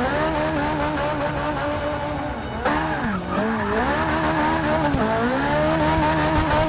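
A car engine roars and revs up and down.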